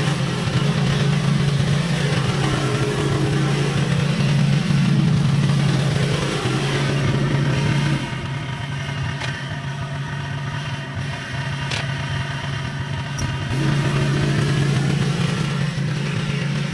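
A lawn mower engine hums steadily nearby, growing quieter as it moves away and louder as it returns.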